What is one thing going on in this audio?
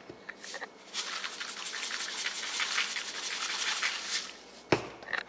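A pepper grinder crunches and grinds steadily.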